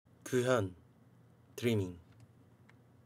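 A young man speaks a few short words close to a microphone.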